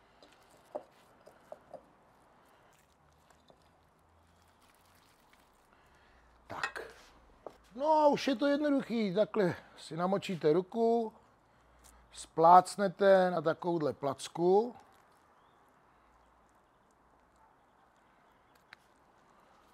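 Hands slap and pat raw minced meat into balls.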